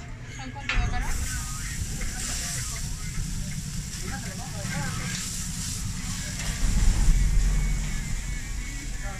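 Meat sizzles on a hot griddle.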